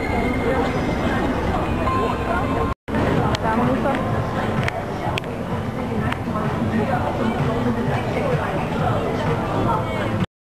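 A busy crowd murmurs and chatters all around outdoors.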